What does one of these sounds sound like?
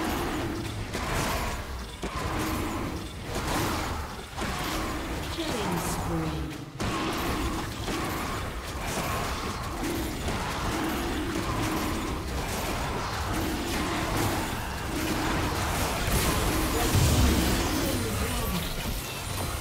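Video game spell effects whoosh and clash in a fight.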